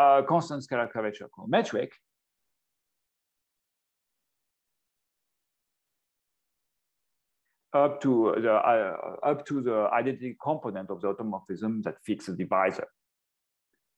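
A man lectures calmly through a microphone in an online call, pausing now and then.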